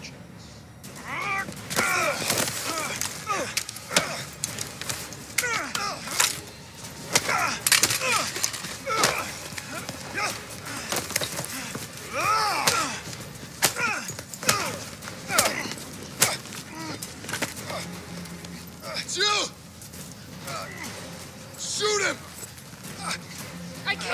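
Heavy punches and blows land with sharp thuds.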